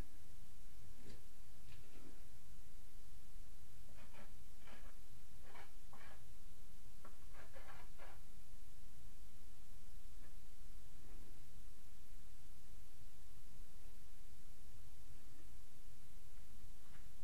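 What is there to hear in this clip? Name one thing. A man scrapes and taps at a window frame.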